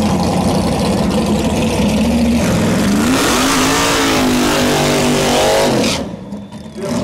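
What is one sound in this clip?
A race car engine roars and revs up loudly.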